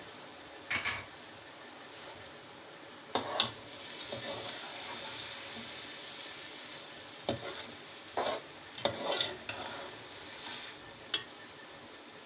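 A metal spatula scrapes and clinks against a metal pot.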